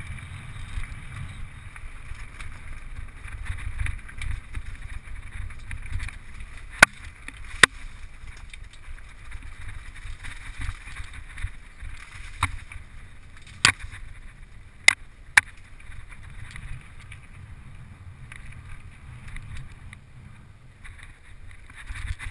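Wind rumbles and buffets against a microphone.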